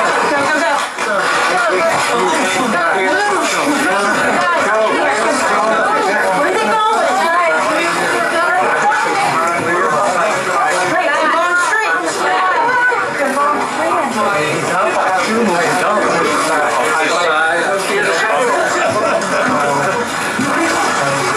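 A crowd of men and women talk and call out at once, close by.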